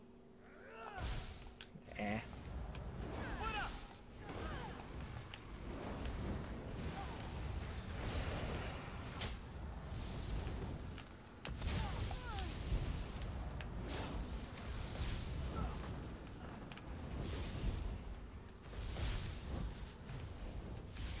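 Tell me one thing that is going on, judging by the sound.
Magic blasts crackle and boom in a fight.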